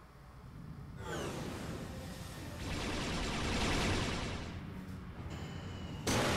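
A spaceship engine roars as it flies past.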